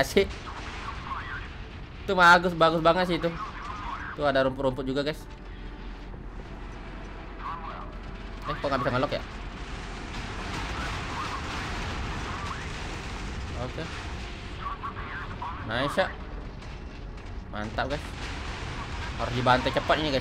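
Explosions and gunfire rumble in the background.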